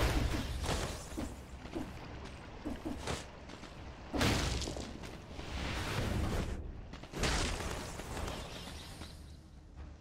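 Sword slashes and magic bursts whoosh sharply in a video game.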